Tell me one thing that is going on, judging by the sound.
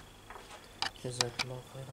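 An elderly man speaks briefly and calmly nearby.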